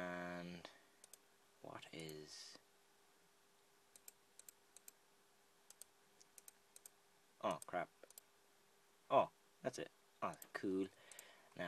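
Soft mouse clicks tap as items are moved.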